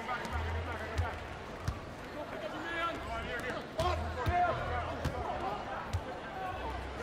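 A basketball bounces on the court with dull thumps.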